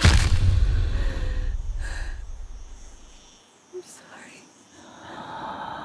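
A young woman breathes heavily and sobs softly nearby.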